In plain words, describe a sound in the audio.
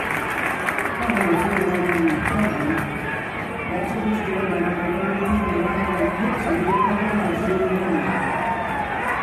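Young women chant in unison.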